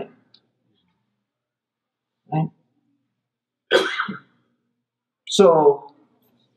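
A middle-aged man speaks slowly and deliberately into a microphone, with pauses between phrases.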